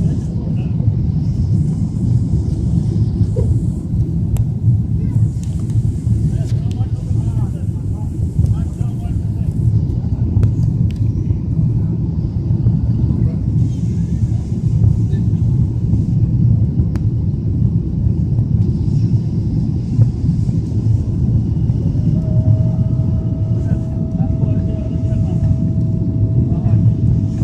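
Jet engines roar steadily inside an airliner cabin.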